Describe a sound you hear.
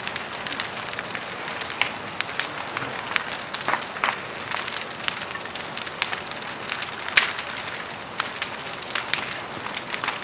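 A large fire roars steadily.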